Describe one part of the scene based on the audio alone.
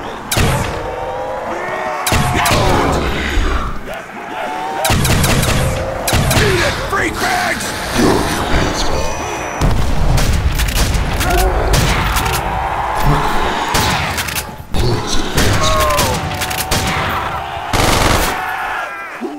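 Guns fire in loud, repeated bursts.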